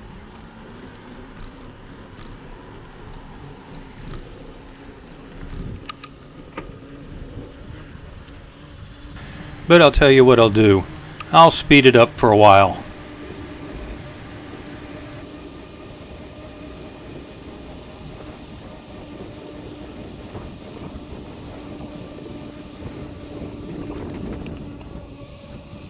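Bicycle tyres hum steadily on smooth pavement.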